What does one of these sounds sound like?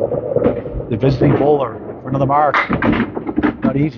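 Bowling pins crash and clatter as a ball strikes them.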